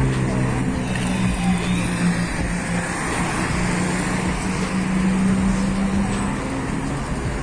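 A car engine hums as the car drives past nearby.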